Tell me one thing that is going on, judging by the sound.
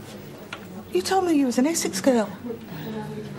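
A middle-aged woman speaks earnestly, close by.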